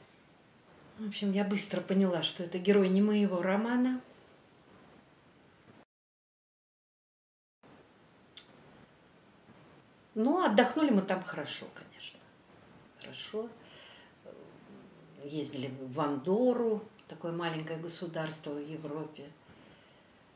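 A middle-aged woman speaks close by, with pauses between phrases.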